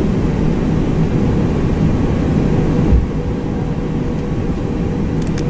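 Jet engines rumble steadily at low power.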